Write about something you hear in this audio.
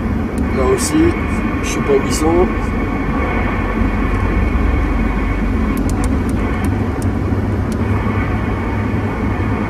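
A car rumbles along a road at speed.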